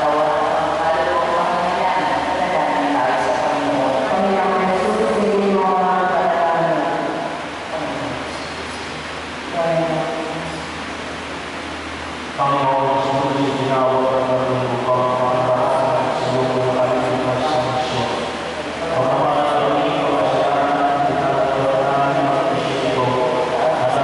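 A woman sings slowly into a microphone, heard through loudspeakers in an echoing hall.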